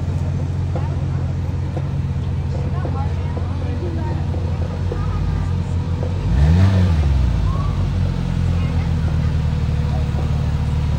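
A crowd chatters outdoors in the background.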